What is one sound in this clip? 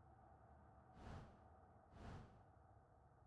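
A soft interface click sounds twice.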